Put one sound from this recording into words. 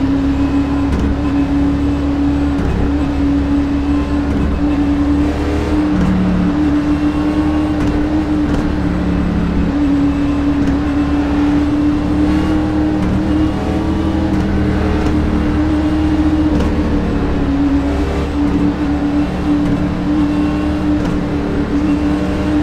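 A race car engine drones loudly and steadily.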